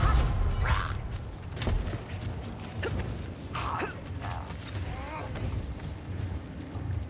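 Heavy footsteps run over rough ground.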